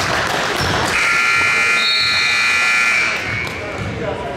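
A loud game buzzer sounds steadily.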